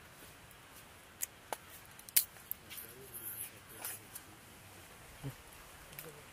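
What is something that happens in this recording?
A fibrous pod snaps and tears as it is peeled by hand.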